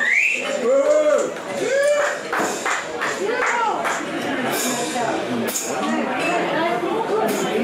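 A man sings into a microphone, heard through loudspeakers.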